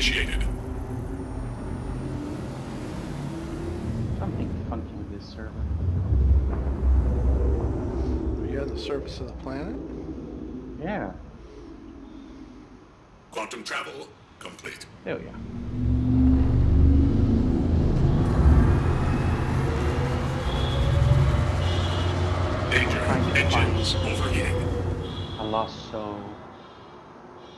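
A spaceship engine rumbles deeply, swelling and easing as the ship turns.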